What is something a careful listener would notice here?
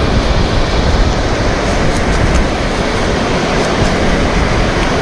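A knife scrapes scales off a fish on a wooden board.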